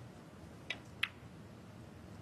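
Snooker balls knock together with a crisp clack.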